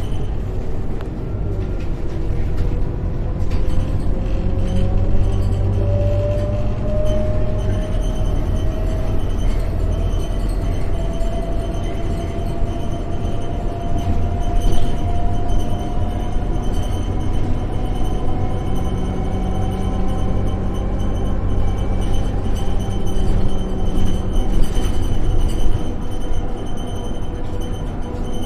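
A bus engine hums and whines steadily while driving.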